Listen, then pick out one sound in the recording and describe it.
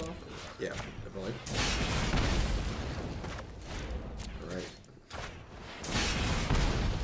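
A man talks with animation into a microphone, close up.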